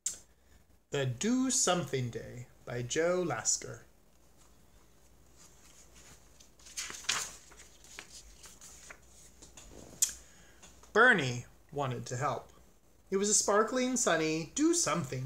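A man reads aloud expressively, close to the microphone.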